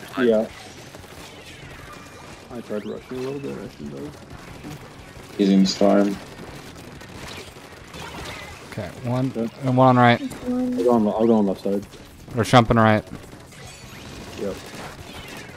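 Cartoonish ink blasters splat and spray in quick bursts.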